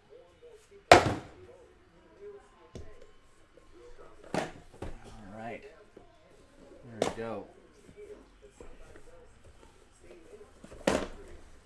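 Cardboard boxes knock and thud as they are handled.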